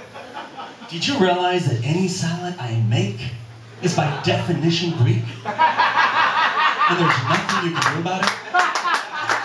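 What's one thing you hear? A man speaks with animation into a microphone, heard through loudspeakers in an echoing room.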